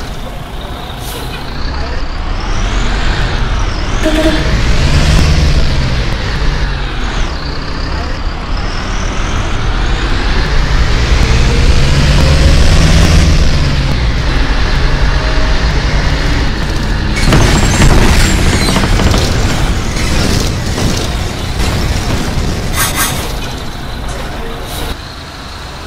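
A bus engine hums and revs up and down as it drives.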